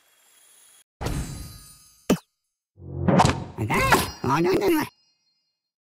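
Cartoonish game sound effects whoosh and jingle as a level begins.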